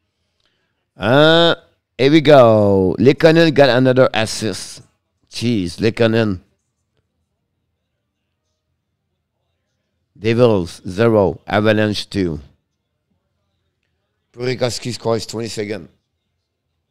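A middle-aged man speaks calmly into a close microphone, in short bursts between long silences.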